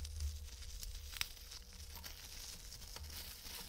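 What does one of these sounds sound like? Bubble wrap crackles softly as it is unwrapped.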